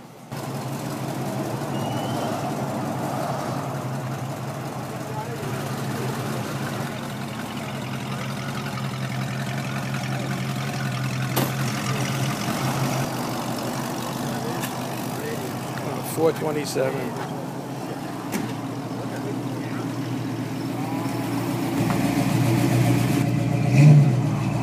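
A car engine idles nearby with a steady low rumble.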